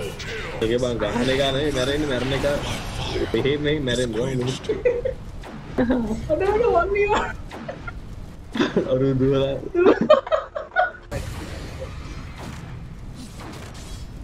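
Magical spell effects crackle and whoosh during a fight.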